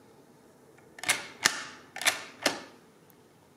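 A hand-cranked mechanical calculator clicks and clatters as its crank turns.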